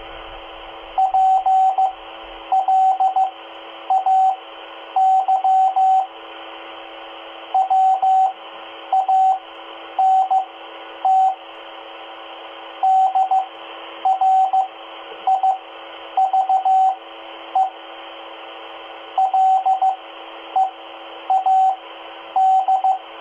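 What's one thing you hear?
A two-way radio beeps out quick bursts of Morse code tones.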